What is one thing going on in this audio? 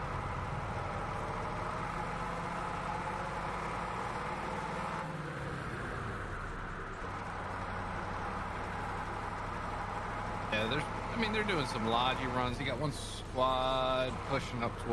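A truck engine hums steadily as it drives along.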